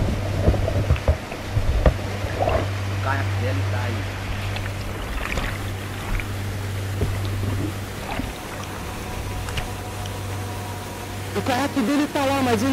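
A waterfall roars and crashes nearby.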